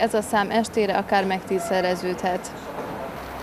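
A young woman speaks calmly and clearly into a microphone close by.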